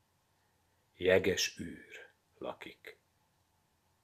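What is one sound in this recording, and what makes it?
An older man speaks calmly and close to a microphone.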